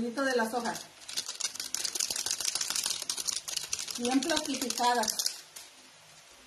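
Crinkly plastic leaves rustle and crackle as they are shaken.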